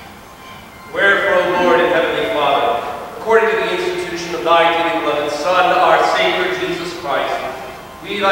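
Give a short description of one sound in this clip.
A congregation sings together, echoing in a large hall.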